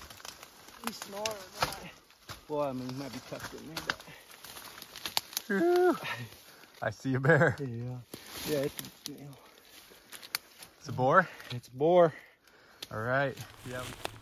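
Leaves and branches rustle as a man pushes through brush.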